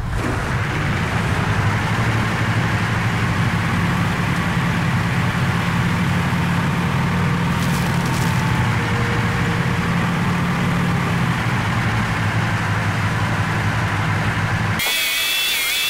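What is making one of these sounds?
Tank tracks clatter and squeak over rough ground.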